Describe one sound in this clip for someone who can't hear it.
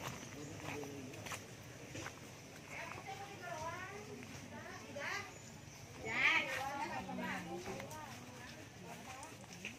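Women talk and call out nearby outdoors.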